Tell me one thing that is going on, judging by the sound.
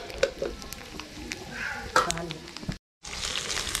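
Hot oil sizzles and crackles in a small pan.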